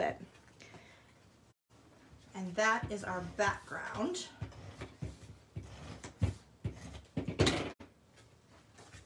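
Paper rustles and scrapes as hands fold and smooth it.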